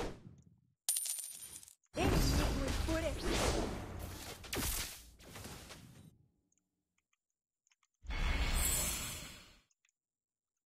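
Game attack sounds whoosh and clash in bursts.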